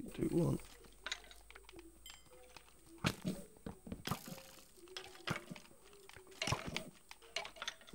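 A sword strikes a rattling skeleton in quick hits.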